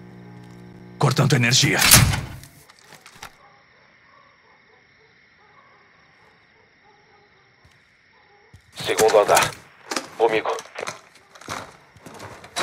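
A young man talks with animation into a microphone.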